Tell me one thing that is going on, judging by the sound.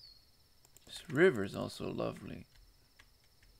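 A young man speaks briefly with animation, close to a microphone.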